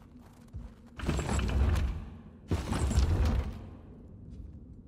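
A heavy stone mechanism grinds and rumbles as it turns.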